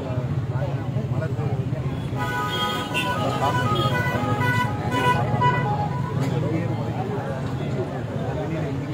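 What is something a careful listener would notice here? A crowd of men and women talk over one another outdoors, close by.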